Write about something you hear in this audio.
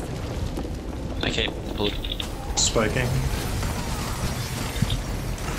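Magical blasts whoosh and crackle in bursts.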